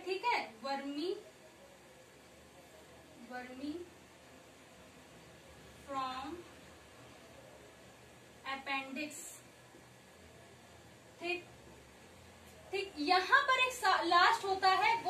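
A young woman speaks calmly and clearly nearby, in short phrases with pauses.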